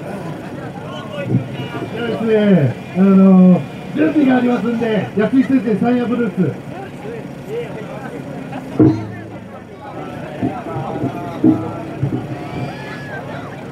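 A crowd of young men and women talk and call out loudly outdoors.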